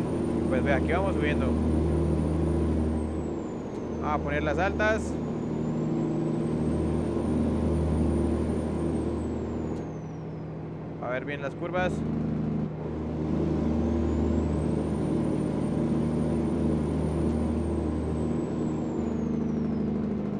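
A truck engine drones steadily.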